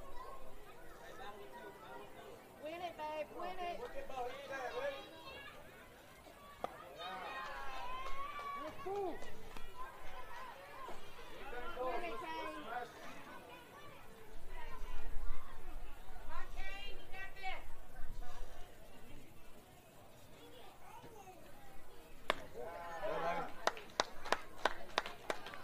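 People shout and chat near the field, heard from a distance outdoors.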